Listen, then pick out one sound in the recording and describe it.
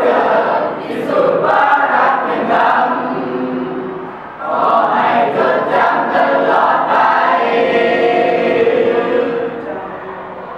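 A group of teenagers sings together loudly in a room.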